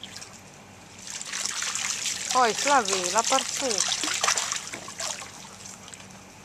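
Water splashes close by.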